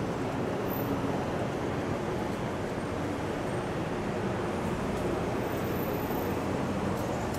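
City traffic rumbles steadily nearby outdoors.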